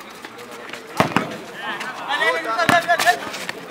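A ball is kicked hard against a hard court.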